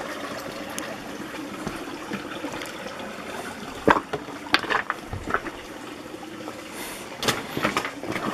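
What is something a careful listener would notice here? A shallow stream trickles gently over stones.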